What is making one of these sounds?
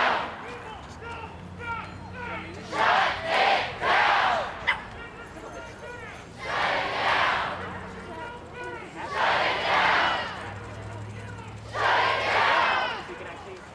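Many people in a crowd talk and murmur all around.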